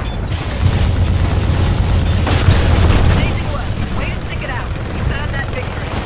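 Loud explosions boom and rumble in a video game.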